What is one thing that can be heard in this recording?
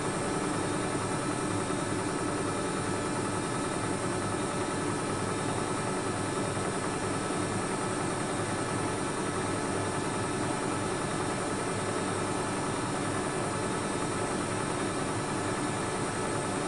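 A washing machine drum turns with a steady hum.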